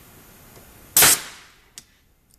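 A metal tool clicks loudly once.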